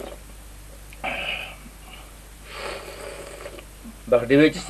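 A man slurps tea from a cup.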